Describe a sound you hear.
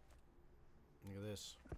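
A man speaks briefly into a headset microphone.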